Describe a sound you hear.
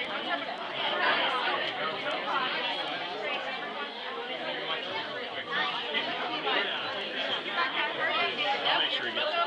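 A crowd of men and women chatter all around, close by.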